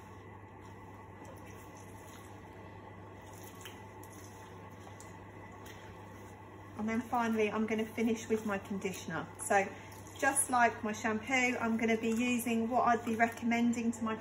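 Water sprays from a shower head onto hair in a basin.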